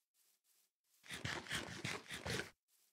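Food is munched in quick, crunchy bites.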